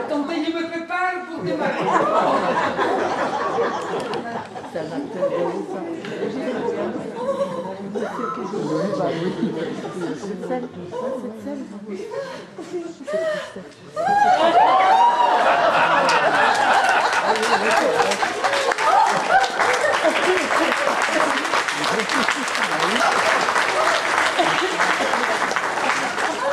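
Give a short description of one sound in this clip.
A man speaks loudly on a stage.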